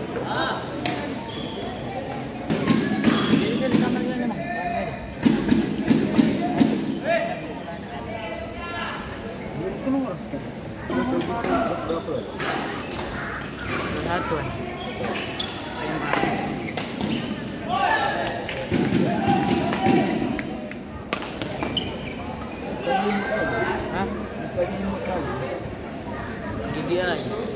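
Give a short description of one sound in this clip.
Players call out and shout loudly in an echoing hall.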